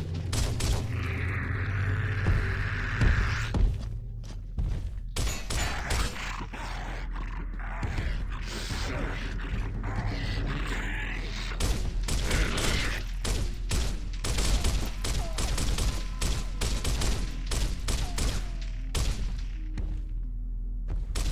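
A rifle fires in short bursts, echoing off stone walls.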